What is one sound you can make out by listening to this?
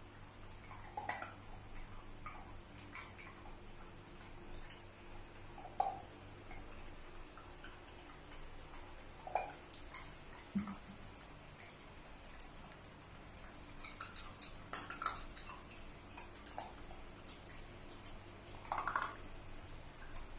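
A small dog whines and yelps in short bursts close by.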